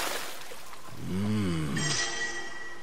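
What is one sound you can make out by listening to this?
A young man exclaims cheerfully.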